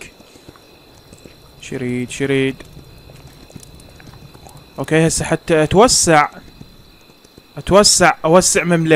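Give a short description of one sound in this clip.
A horse's hooves patter along at a steady gallop.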